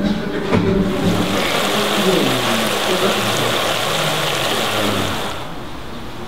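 Chopped vegetables sizzle and crackle in hot oil.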